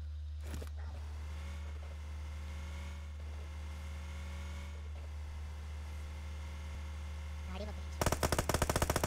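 A car engine hums as a car drives in a video game.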